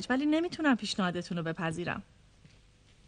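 A young woman speaks with animation close by.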